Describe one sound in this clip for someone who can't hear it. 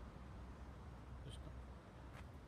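A cat meows softly nearby.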